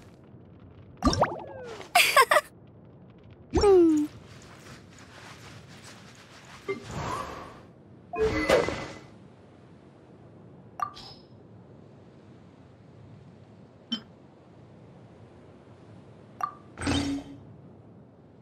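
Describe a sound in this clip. Short game menu chimes and whooshes sound as options are picked.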